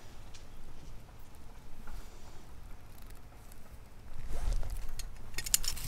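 A hand tool clicks and snaps.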